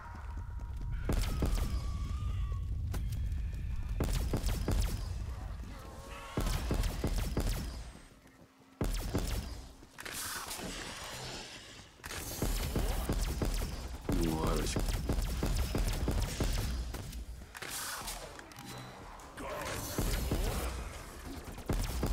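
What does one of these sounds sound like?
A ray gun fires crackling energy blasts in rapid bursts.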